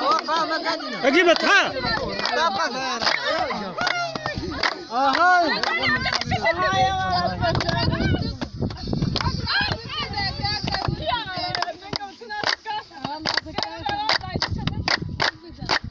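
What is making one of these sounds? A crowd of women and girls sing and chant together loudly, close by, outdoors.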